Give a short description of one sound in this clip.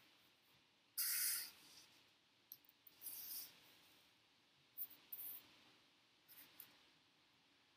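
Paper rustles and slides as it is handled up close.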